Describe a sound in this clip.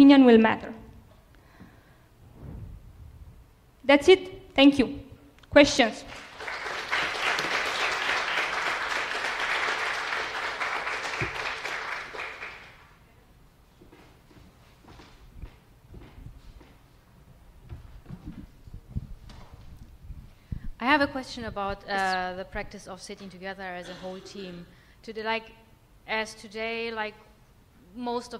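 A young woman speaks calmly through a microphone.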